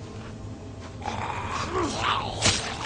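A man groans and growls close by.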